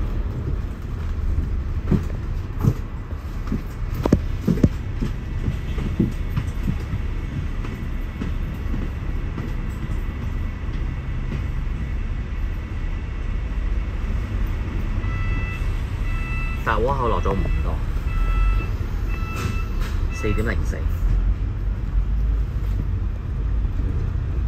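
A bus engine rumbles steadily close by.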